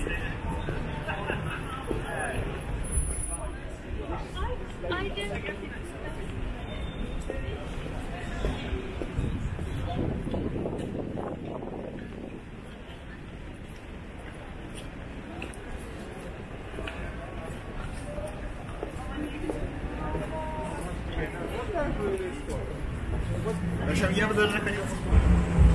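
A crowd of passers-by murmurs and chatters nearby.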